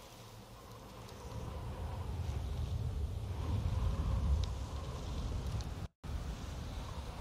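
Wind blows across open ground in low gusts.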